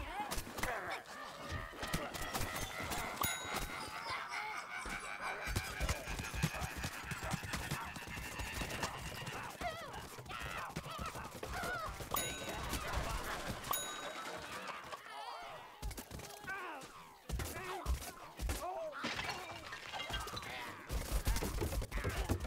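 Game weapons fire in rapid bursts with cartoon impact sounds.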